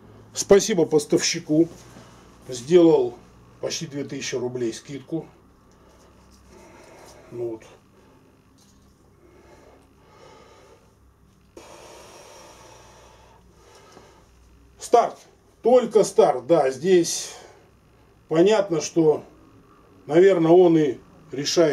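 A middle-aged man talks calmly and close by, pausing now and then.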